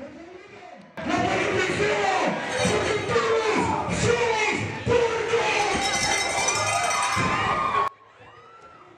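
A man announces loudly through a microphone over loudspeakers.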